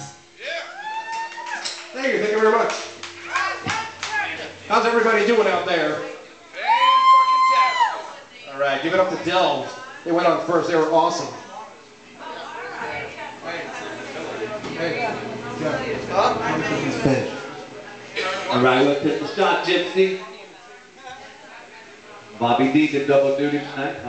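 A man sings loudly through loudspeakers.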